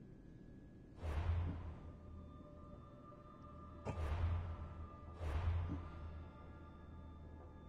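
Soft whooshing menu sounds play now and then.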